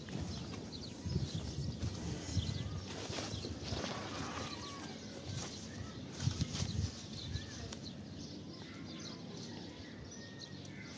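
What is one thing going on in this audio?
Tent fabric rustles and flaps as it is handled.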